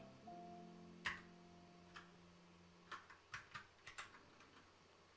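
Keys click on a keyboard.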